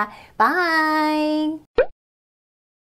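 A young woman speaks brightly and cheerfully, close by.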